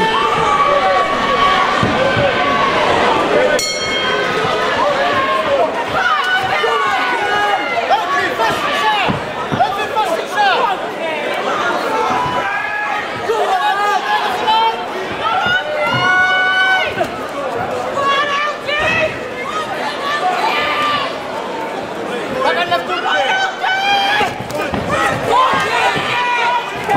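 A crowd shouts and cheers loudly throughout.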